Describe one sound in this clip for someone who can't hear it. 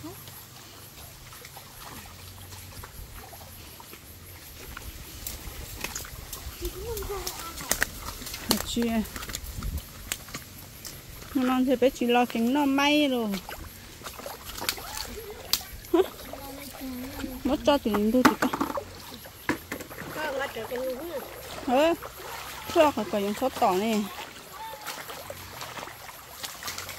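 Shallow water trickles in a stream.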